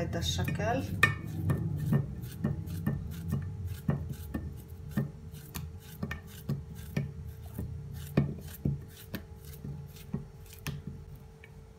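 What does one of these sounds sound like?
A knife cuts through a soft banana with quick, light taps.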